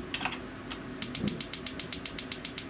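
A toaster oven timer knob ticks rapidly as it is turned.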